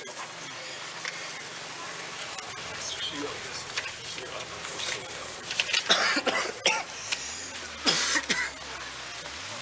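Clothing rustles as a man pulls off a tight jersey.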